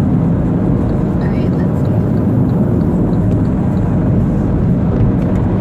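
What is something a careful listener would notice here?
A car's engine hums low and steady from inside.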